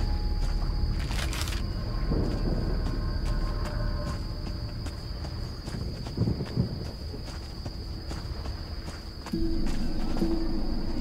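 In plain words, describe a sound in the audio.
Footsteps walk steadily over stone.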